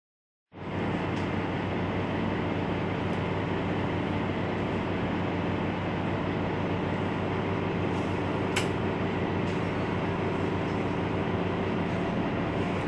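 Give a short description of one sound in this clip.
A bus engine idles close by with a steady low rumble.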